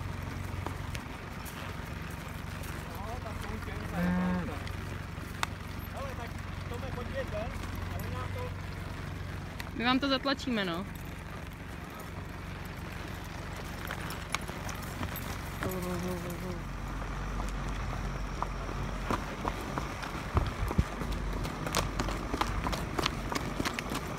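Horse hooves thud and clop steadily over the ground.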